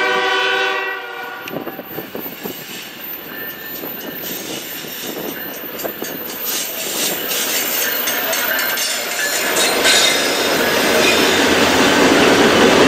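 A diesel locomotive engine rumbles and grows louder as it passes close by.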